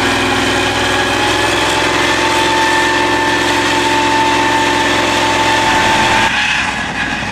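A tracked vehicle's engine roars loudly close by.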